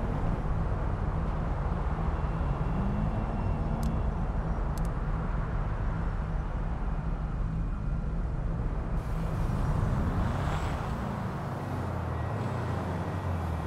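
A car engine hums and revs steadily while driving.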